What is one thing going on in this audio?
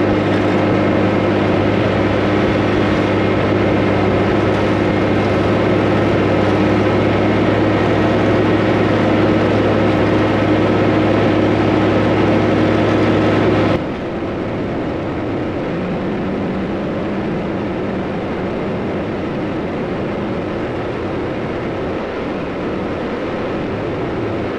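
A heavy machine's engine drones steadily close by.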